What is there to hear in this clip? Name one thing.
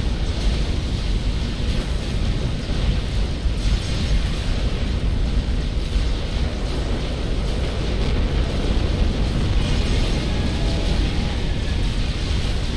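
Explosions rumble and boom continuously.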